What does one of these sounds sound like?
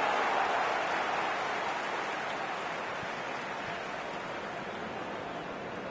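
A stadium crowd roars steadily, slowly fading a little.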